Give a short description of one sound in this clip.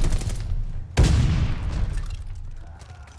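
A loud blast booms and rumbles away.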